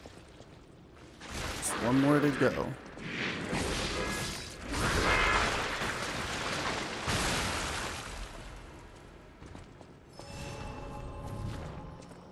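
Footsteps clatter on a stone floor.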